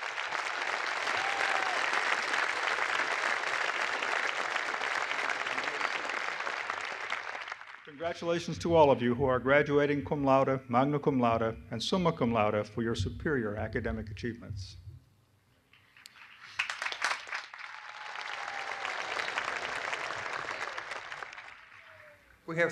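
A large outdoor crowd applauds.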